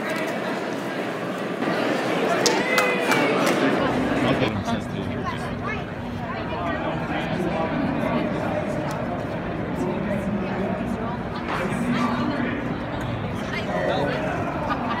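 A crowd chatters all around in a large echoing hall.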